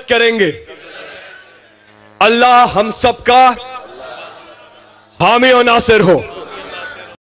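A man shouts slogans through a loudspeaker.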